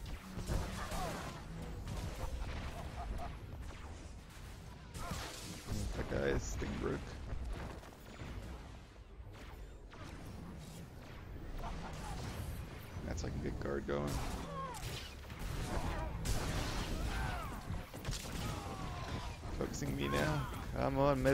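Blaster shots and weapon clashes ring out in a fast fight.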